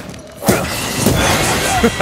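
Fire roars up in a burst.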